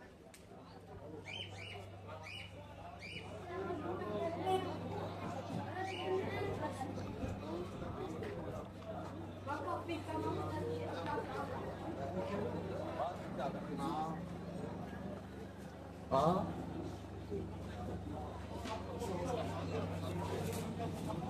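A crowd of men and women talks in a busy outdoor street.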